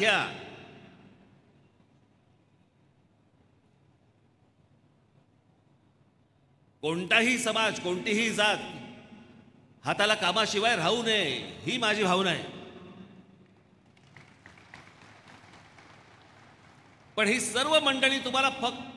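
A middle-aged man speaks forcefully with animation through a loudspeaker system in a large echoing hall.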